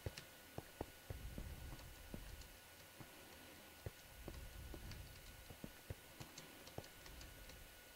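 Footsteps thud softly on grass and stone.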